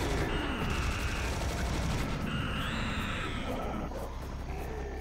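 A rapid-firing gun rattles loudly.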